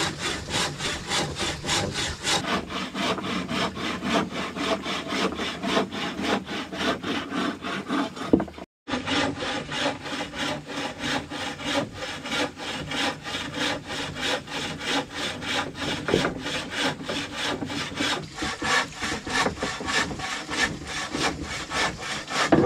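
A hand saw cuts back and forth through wood in a quick, steady rhythm.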